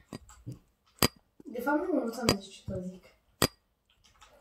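Short, sharp knocks of blocks being placed in a game.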